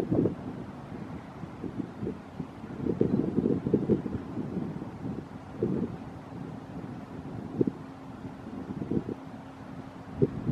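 Wind buffets and rumbles in gusts outdoors.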